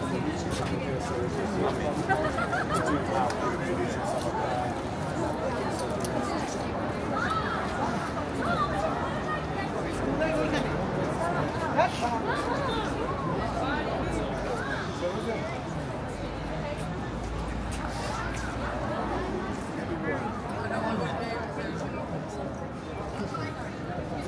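Many people chatter at once outdoors.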